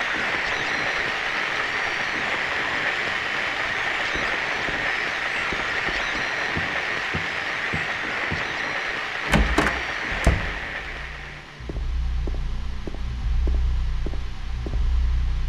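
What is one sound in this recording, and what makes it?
Footsteps thud slowly on a hard floor.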